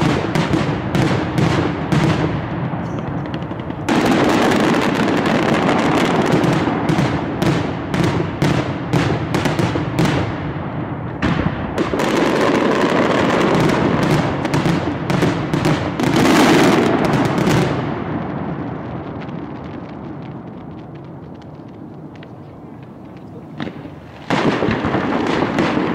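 Firecrackers bang in rapid, loud bursts outdoors, then fade and start again.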